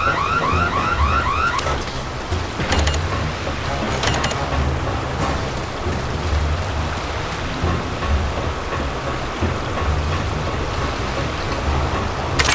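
Heavy footsteps clank steadily on a metal floor.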